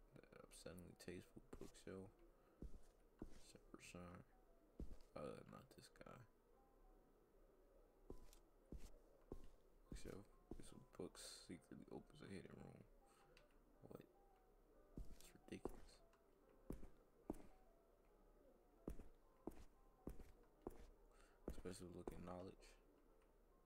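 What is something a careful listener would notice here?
A man talks calmly into a close microphone in short bursts.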